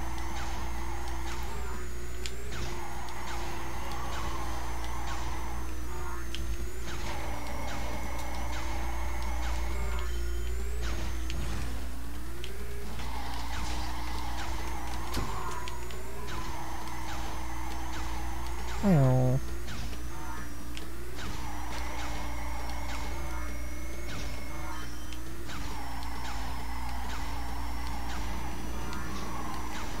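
A racing kart engine drones steadily, its pitch rising and falling.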